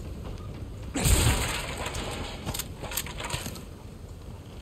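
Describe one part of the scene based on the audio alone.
Wooden barrels smash and splinter apart.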